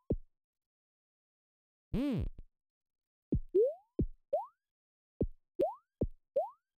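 Low electronic thumps drop in pitch now and then.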